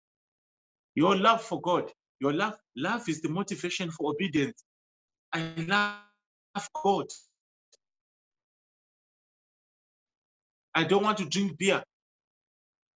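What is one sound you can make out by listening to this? A man speaks with animation into a close microphone, pausing now and then.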